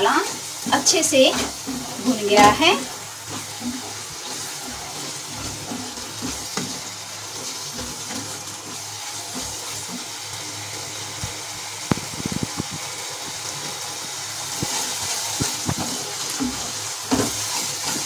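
A wooden spatula scrapes and stirs thick sauce in a pan.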